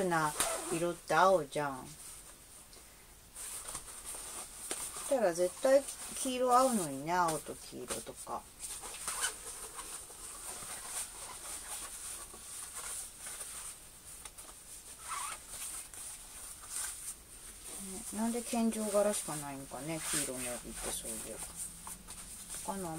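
Cloth rustles as a sash is folded and wrapped.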